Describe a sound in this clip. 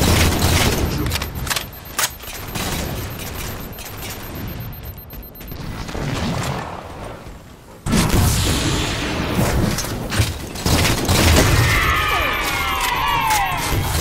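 A heavy melee blow thuds.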